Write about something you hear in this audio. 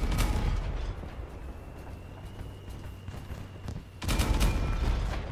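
Heavy machine guns fire in rapid bursts.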